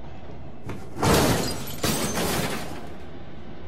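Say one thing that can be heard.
Glass cracks and shatters.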